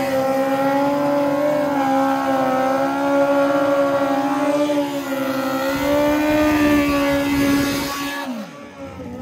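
A motorcycle engine roars loudly at high revs.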